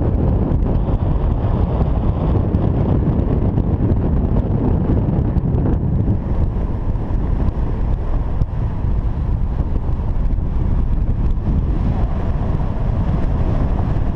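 Strong wind rushes and buffets loudly against a microphone in the open air.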